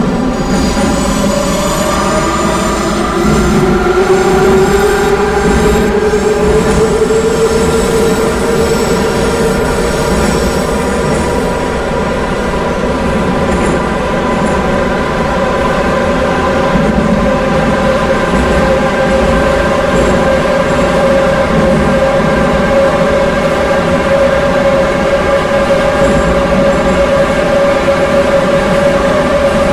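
Train wheels rumble and clatter on rails in a tunnel.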